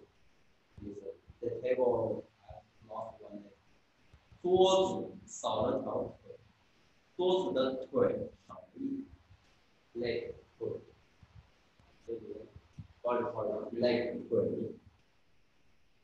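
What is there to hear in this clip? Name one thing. A young man speaks calmly, explaining, close by.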